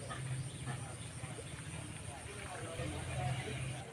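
Something splashes into the water.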